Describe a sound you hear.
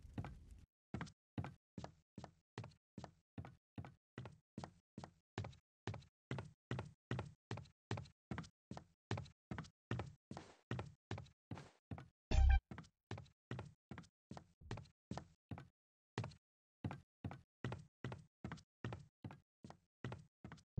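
Footsteps tap at a steady walking pace on a hard floor.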